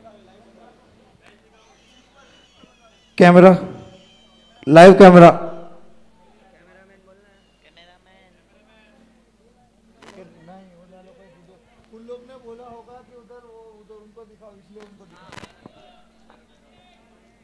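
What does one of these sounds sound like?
A crowd of men chatters.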